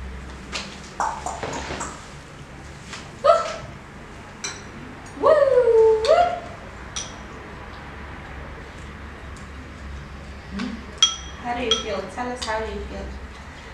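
A young woman talks softly and playfully to a baby close by.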